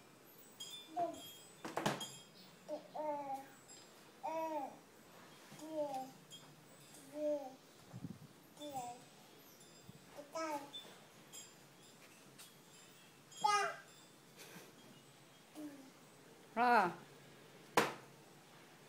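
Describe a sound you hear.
A toddler babbles and squeals.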